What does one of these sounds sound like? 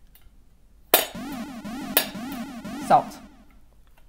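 A metal lid clinks against a tin.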